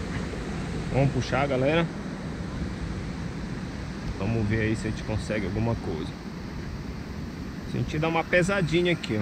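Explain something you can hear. A man speaks casually, close to the microphone.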